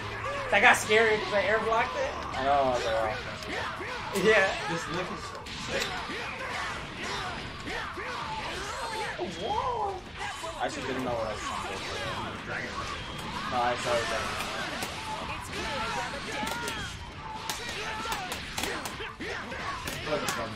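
Energy blasts whoosh and explode.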